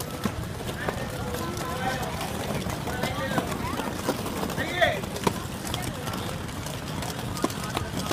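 Roller skate wheels rumble and roll over concrete.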